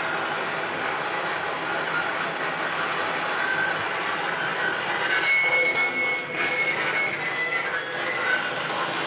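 Droning electronic music plays with shifting, hissing tones.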